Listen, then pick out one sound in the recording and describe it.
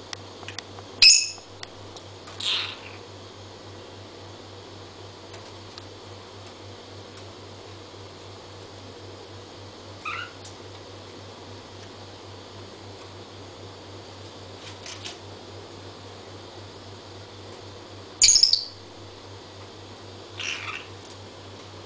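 A small parrot gives short, sharp chirps now and then.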